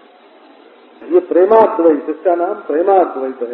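An elderly man sings slowly in a melodic voice through a microphone.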